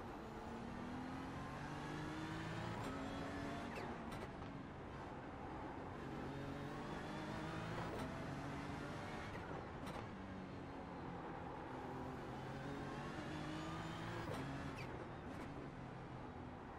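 Other racing car engines roar close by.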